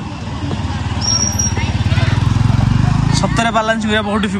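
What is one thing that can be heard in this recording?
A motor scooter rumbles past close by.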